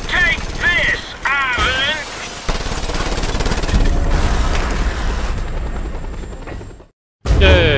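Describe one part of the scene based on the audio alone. Gunfire rattles in rapid bursts from a game.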